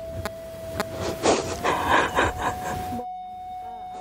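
A woman sobs and cries.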